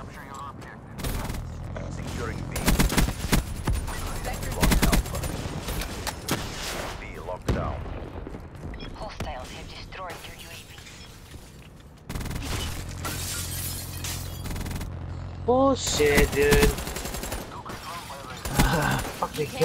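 Gunfire crackles in quick bursts from a video game.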